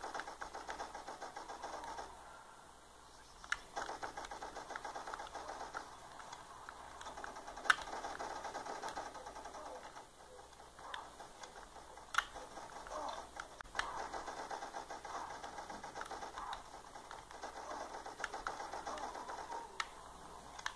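Gamepad buttons click softly.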